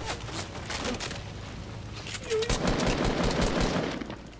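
Wooden walls snap into place in quick knocks.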